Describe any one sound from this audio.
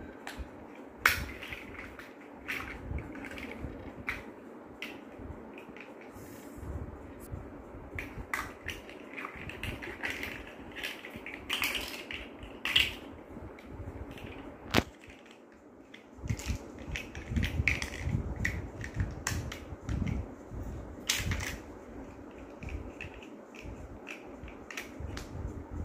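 Plastic toy bricks click and clatter nearby.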